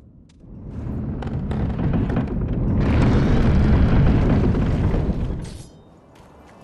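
A heavy wooden gate creaks and rumbles open.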